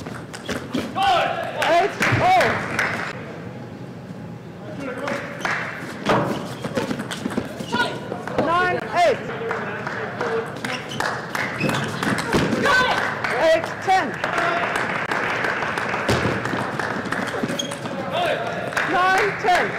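Young women shout loudly in short bursts after points.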